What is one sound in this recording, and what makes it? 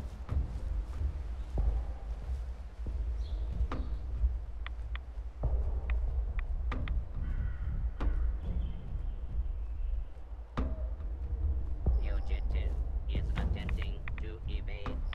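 Footsteps crunch steadily on dirt and dry brush.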